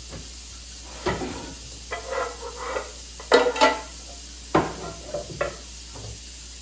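Dishes clink and clatter.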